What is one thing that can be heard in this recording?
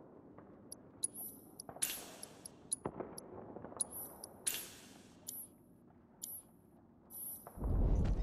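Short electronic menu beeps and chimes sound repeatedly.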